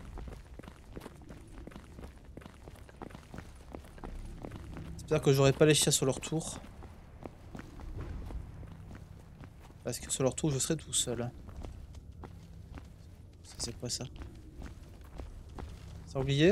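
Footsteps crunch steadily on rough ground.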